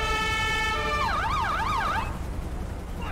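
A police siren wails briefly up and down.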